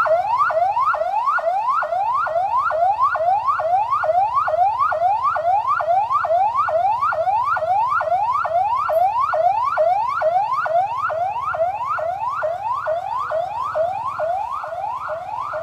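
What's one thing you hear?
A police siren yelps in fast rising sweeps.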